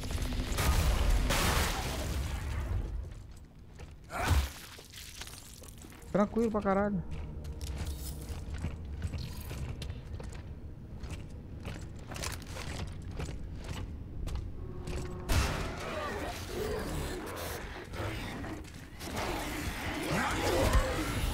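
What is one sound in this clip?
A creature growls and screeches.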